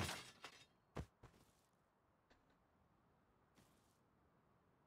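Short sharp knocks and clatters sound now and then, close by.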